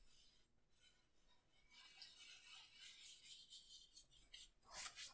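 A brush scratches and swishes across canvas in short strokes.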